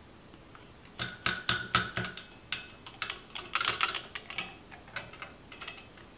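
A glass bottle clinks as a hand handles it.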